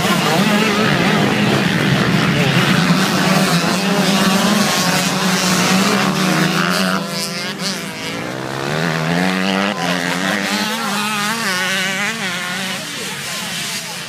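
Dirt bike engines roar loudly close by, then drone further off.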